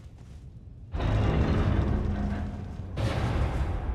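A large heavy door grinds open.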